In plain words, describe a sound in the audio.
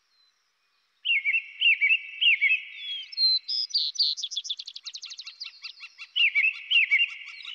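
A songbird sings a series of clear, high whistles and rapid trills.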